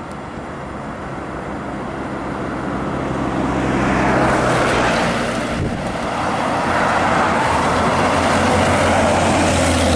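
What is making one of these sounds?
A bus engine grows louder as the bus approaches and roars past close by.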